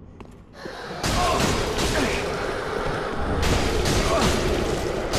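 A ghostly creature lets out a loud, rushing roar.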